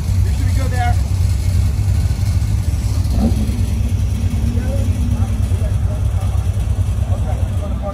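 A sports car engine rumbles low and steadily nearby.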